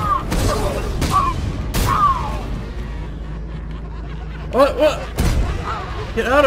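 Punches land with heavy thuds and whooshes.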